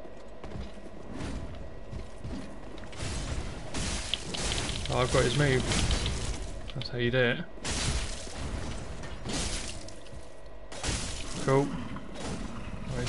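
Swords clash and strike in a game fight.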